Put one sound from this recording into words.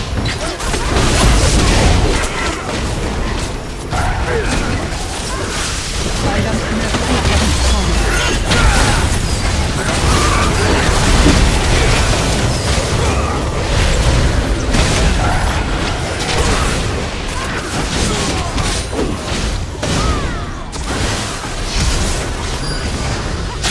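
Heavy blasts and impacts thud repeatedly.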